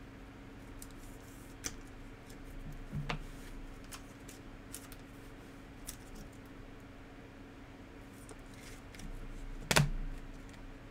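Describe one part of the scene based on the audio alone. Trading cards slide and click against each other.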